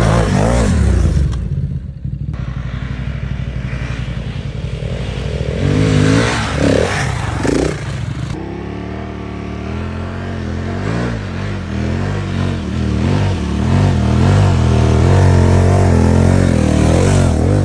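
A dirt bike engine roars past up close.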